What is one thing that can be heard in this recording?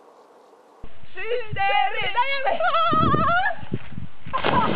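Young people shout and laugh outdoors.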